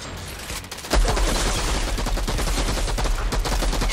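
An automatic gun fires rapid bursts.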